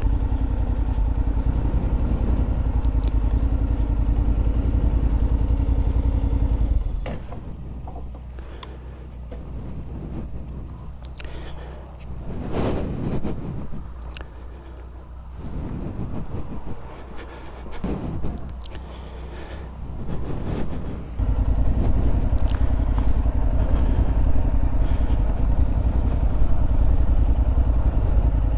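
A motorcycle engine idles close by with a steady low rumble.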